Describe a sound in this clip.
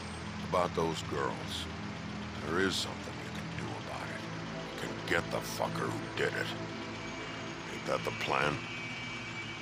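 A gruff man speaks with menace, close by.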